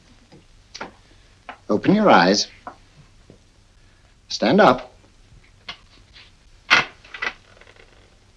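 An elderly man speaks slowly and menacingly, close by.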